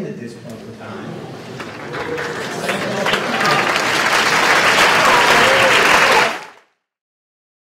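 A large audience chatters and murmurs loudly.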